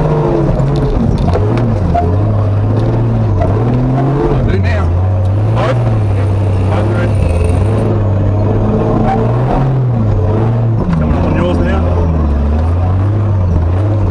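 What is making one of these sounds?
A four-wheel-drive engine revs up and down, loud and close.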